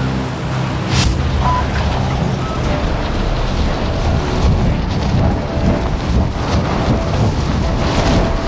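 Wind rushes loudly past a falling body.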